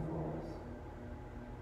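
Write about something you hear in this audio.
A woman speaks briefly into a microphone in a large echoing hall.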